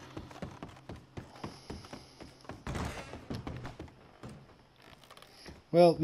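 Boots thud on creaky wooden floorboards.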